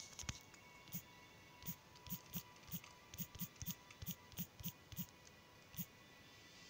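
Keyboard taps click quickly on a phone.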